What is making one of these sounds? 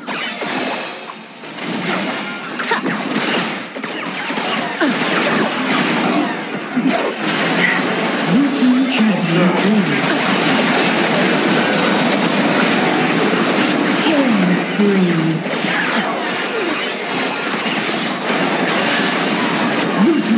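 Game weapons clang and strike repeatedly.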